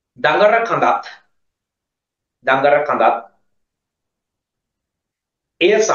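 A man speaks in short phrases into a microphone, heard over an online call.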